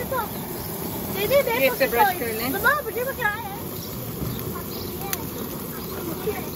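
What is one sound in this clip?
Food sizzles on a hot grill.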